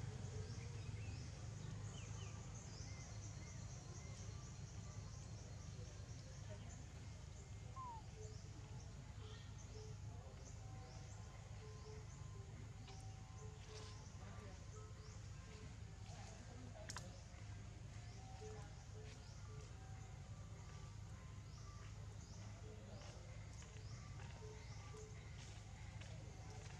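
A monkey chews food with soft smacking sounds.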